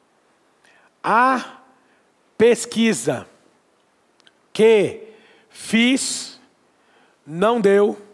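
A man speaks calmly in short phrases into a nearby microphone.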